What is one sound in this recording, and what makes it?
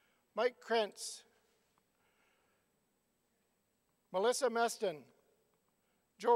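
A middle-aged man speaks through a microphone and loudspeakers in a large echoing hall, in short phrases with pauses.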